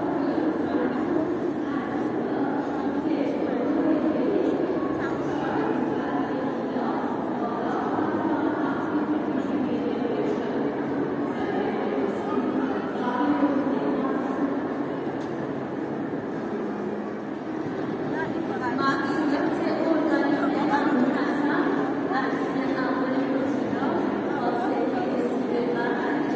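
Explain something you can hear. A crowd of men and women murmur and chatter throughout a large echoing hall.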